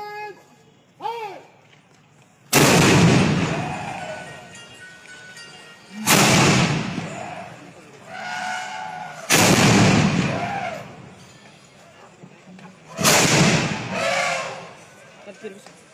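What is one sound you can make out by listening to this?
Men shout loudly between the blasts.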